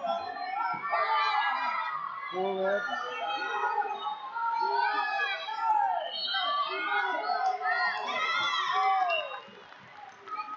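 A crowd of spectators shouts and cheers in a large hall.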